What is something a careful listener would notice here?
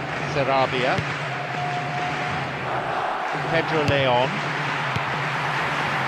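A football is kicked with a short thud.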